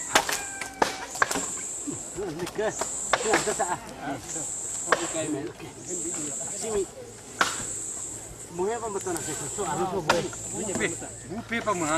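A metal tool strikes the ground and wood with sharp knocks.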